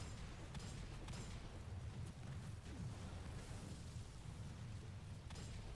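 Energy blasts crackle and hum.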